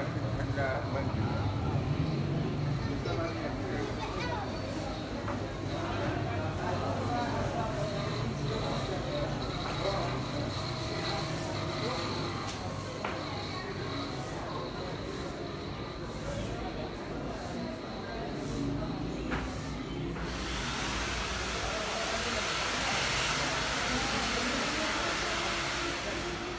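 A crowd murmurs in a covered market.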